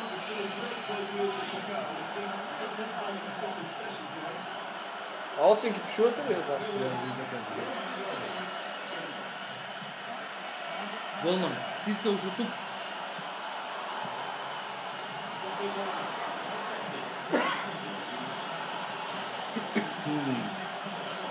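A stadium crowd murmurs and roars steadily through a television speaker.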